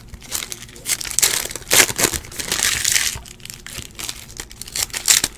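A plastic sleeve crinkles and rustles as it is handled.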